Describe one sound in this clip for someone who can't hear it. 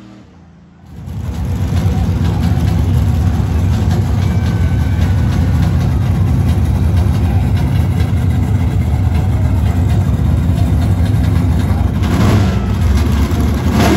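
A dragster engine roars loudly and steadily up close.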